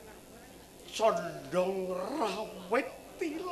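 A man declaims loudly and dramatically through a loudspeaker.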